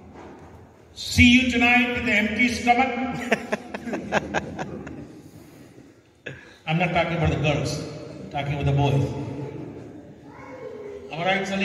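An elderly man speaks steadily through a microphone and loudspeakers in an echoing hall.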